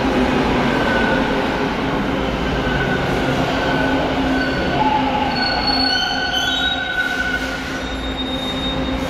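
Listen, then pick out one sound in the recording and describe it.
Train brakes squeal as the train slows.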